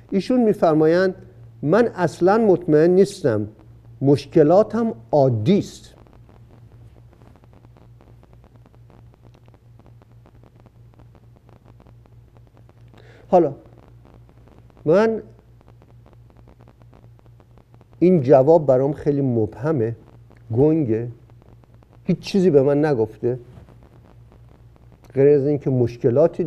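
An elderly man speaks slowly and emphatically into a close microphone, with long pauses.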